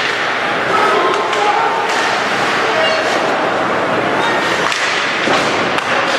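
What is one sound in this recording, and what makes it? A crowd murmurs and calls out in a large echoing arena.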